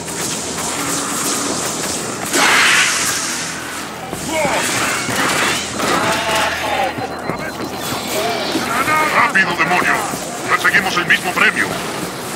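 An energy sword hums and slashes with sharp swooshes.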